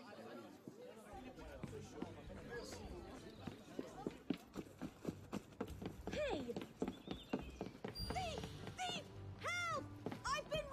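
Footsteps run quickly across wooden boards.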